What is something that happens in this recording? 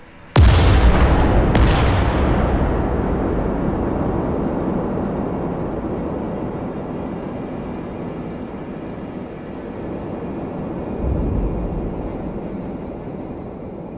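A volcanic eruption booms suddenly and then rumbles on deeply, slowly fading.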